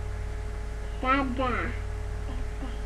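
A small child's high voice calls out briefly, close by.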